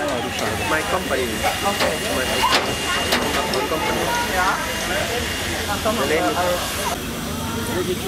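A crowd of adults murmurs in the background outdoors.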